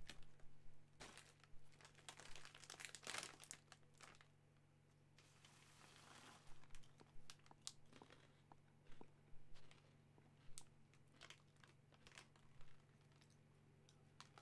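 A snack bag crinkles in a man's hands.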